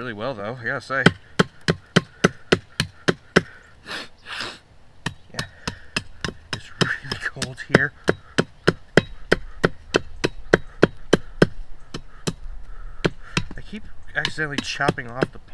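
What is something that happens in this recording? Sharp metal blows strike a wooden stake in quick, steady succession.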